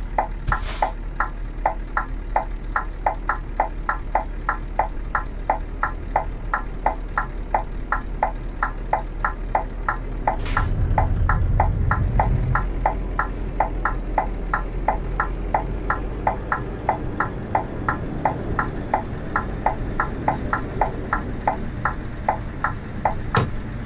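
A truck engine hums steadily at low speed.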